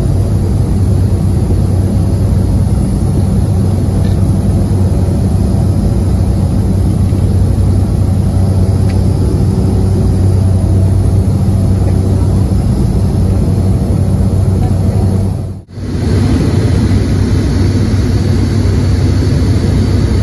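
A jet engine drones steadily with a low hum inside an aircraft cabin.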